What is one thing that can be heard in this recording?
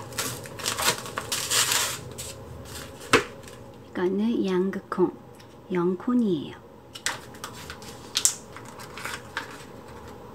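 Plastic packaging crinkles as hands handle it.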